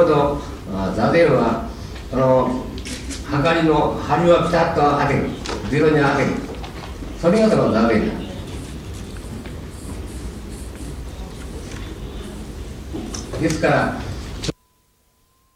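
An elderly man speaks calmly and slowly into a nearby microphone.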